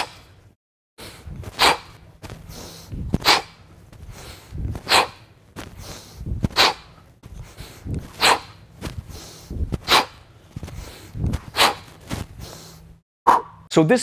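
A man breathes out sharply in a steady rhythm while swinging a heavy weight.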